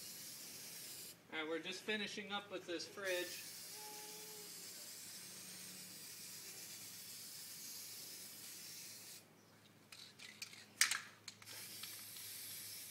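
A spray can hisses in short and long bursts close by.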